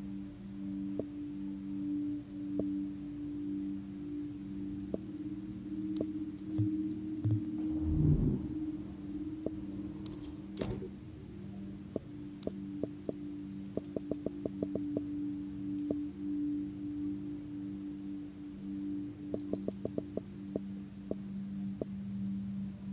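Soft menu clicks tick in quick bursts.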